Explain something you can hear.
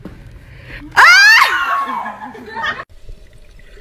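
A young girl shrieks loudly nearby.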